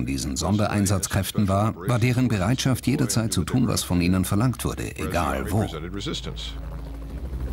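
A middle-aged man speaks calmly and steadily, close to a microphone.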